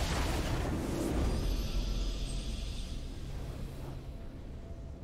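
A bright, triumphant game fanfare swells and then fades away.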